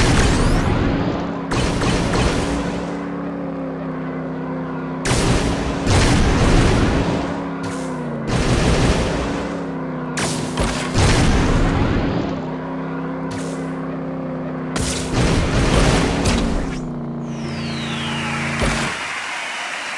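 A toy kart engine hums steadily.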